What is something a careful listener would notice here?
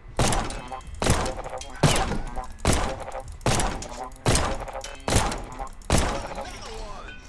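Pistol shots ring out in quick succession.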